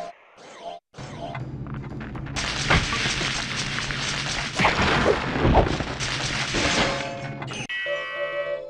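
Blows thud and clang against a training dummy.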